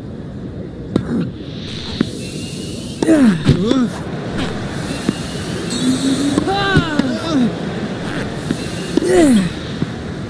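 A tennis racket strikes a ball with sharp pops, back and forth.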